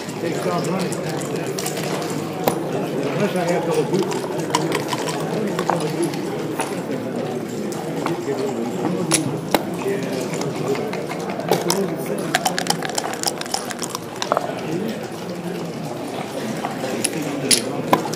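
Game pieces click as they are slid and set down on a board.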